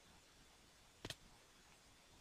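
A video game character hits the ground hard after a long fall.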